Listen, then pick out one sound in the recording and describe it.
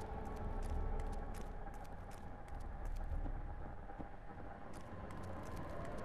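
Footsteps tap on stone steps and floor.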